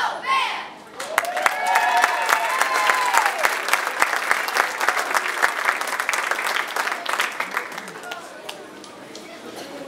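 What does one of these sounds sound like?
An audience applauds in a large hall.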